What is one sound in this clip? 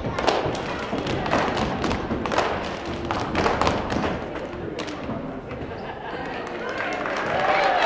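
A crowd murmurs in the background.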